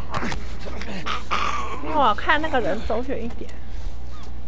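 A man groans and gasps while being choked.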